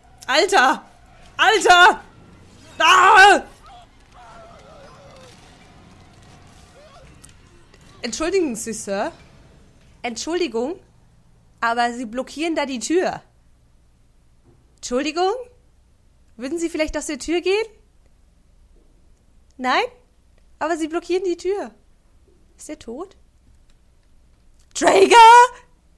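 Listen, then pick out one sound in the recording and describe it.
A young woman screams and laughs close to a microphone.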